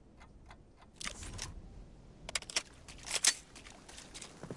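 A rifle clatters and clicks as it is handled and raised.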